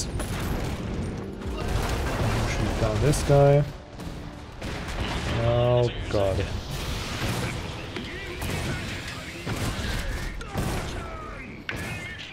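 Gunfire and explosions boom in a battle.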